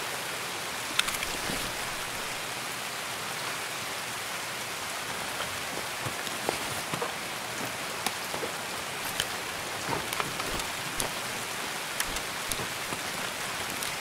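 Soft clicks and rustles sound as gear items are moved about.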